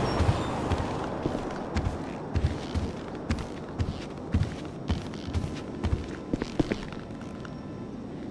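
Footsteps thud on a carpeted floor indoors.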